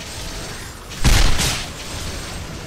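A loud magical blast booms briefly.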